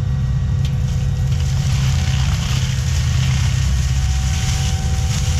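A heavy machine's diesel engine rumbles steadily nearby.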